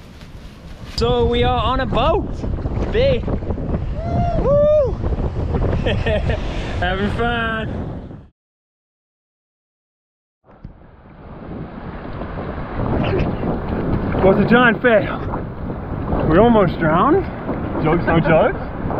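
A man talks cheerfully and laughs close to a microphone.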